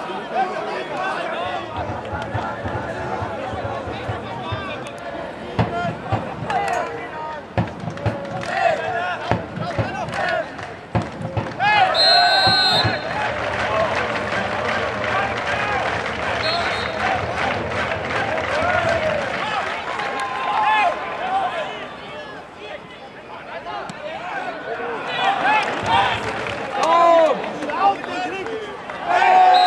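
A crowd of fans chants and cheers outdoors.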